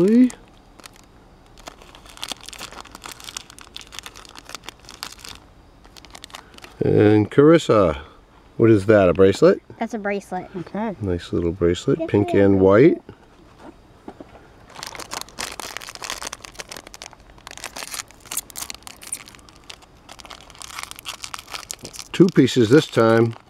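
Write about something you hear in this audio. Foil wrappers crinkle and rustle as hands tear them open.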